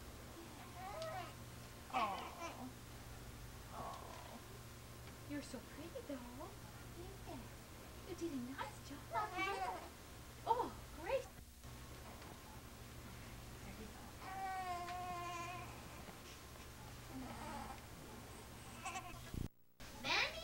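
A baby coos and babbles close by.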